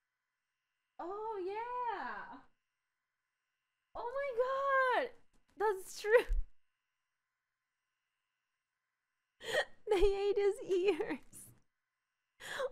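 A young woman talks with animation close to a microphone, with gaps of silence.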